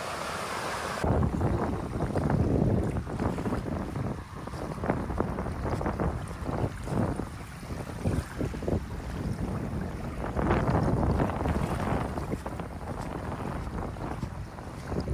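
Shallow water laps gently over sand.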